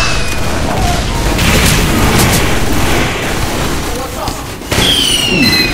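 A flamethrower roars and crackles.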